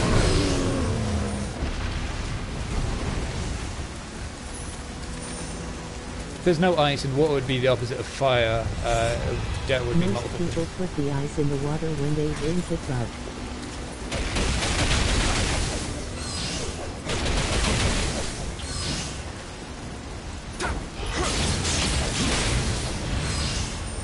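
Heavy rain pours steadily.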